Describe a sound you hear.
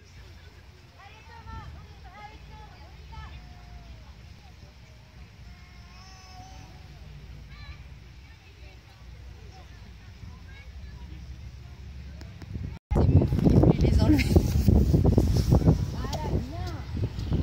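Children talk and call out outdoors.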